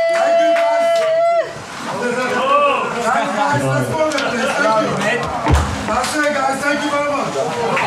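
A man speaks into a microphone with animation, heard through loudspeakers.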